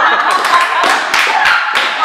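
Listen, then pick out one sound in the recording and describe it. A young woman claps her hands.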